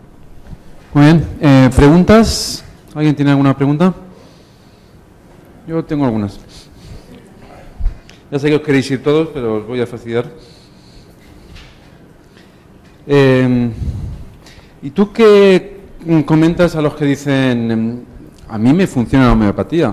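A man speaks to an audience through a microphone in a large echoing hall, in short bursts with pauses.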